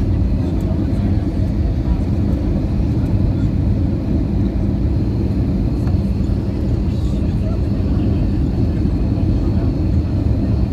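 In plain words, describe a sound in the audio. Jet engines roar steadily inside an aircraft cabin.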